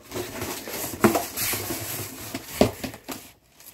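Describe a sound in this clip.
A cardboard box thumps.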